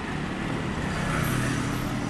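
A small motorcycle rides past close by.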